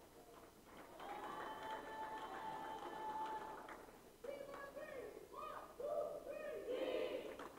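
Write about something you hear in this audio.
A group of young women chant and cheer together in a large echoing hall.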